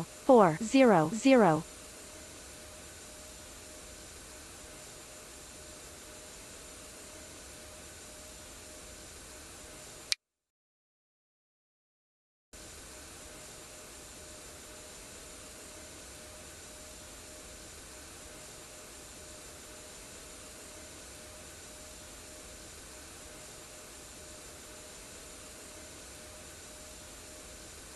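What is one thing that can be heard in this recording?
A jet airliner's engines drone steadily.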